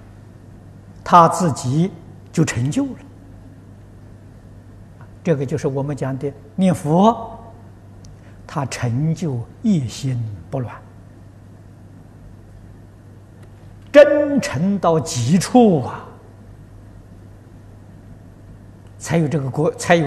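An elderly man speaks calmly into a close microphone, in short phrases with pauses.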